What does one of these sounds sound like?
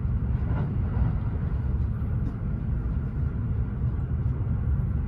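A train rumbles along the tracks with a steady low roar.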